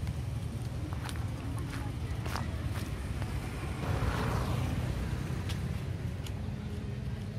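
Dry leaves crackle and rustle on the ground as monkeys move about.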